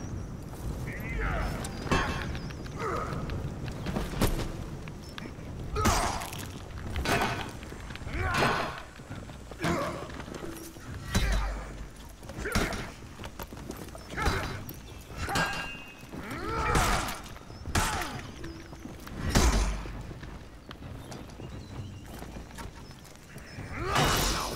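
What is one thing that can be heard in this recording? Warriors grunt and shout as they swing weapons.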